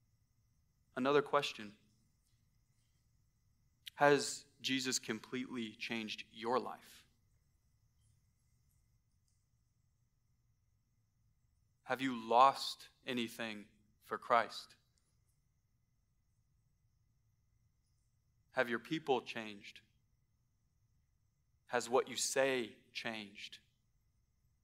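A man speaks calmly into a microphone in short phrases with long pauses.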